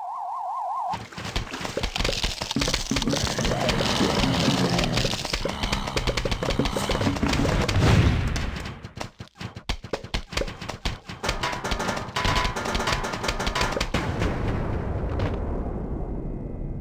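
Many small shots pop and thud in quick succession.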